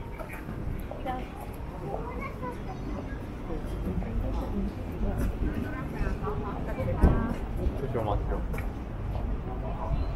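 Men and women talk faintly in passing.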